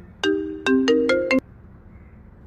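Phone keypad tones beep as a number is dialed.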